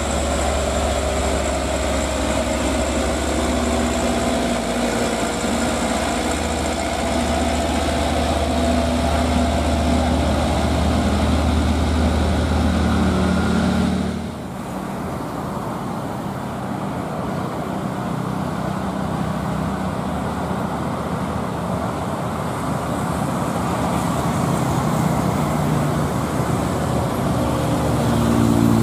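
A heavy truck's diesel engine rumbles and labours close by.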